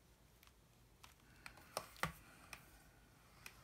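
A sheet of paper rustles and taps as it is handled.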